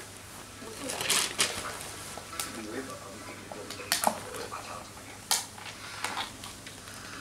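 Plastic cups and spoons clink and knock.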